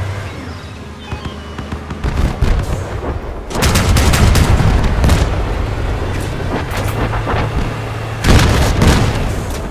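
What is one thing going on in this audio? An automatic cannon fires in rapid bursts.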